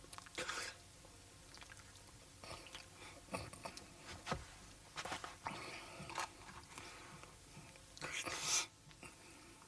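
An elderly man puffs out a sharp breath close by.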